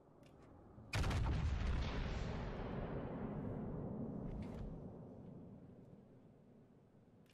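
Heavy ship guns fire with a deep boom that slowly rumbles away.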